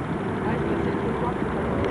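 A man speaks nearby.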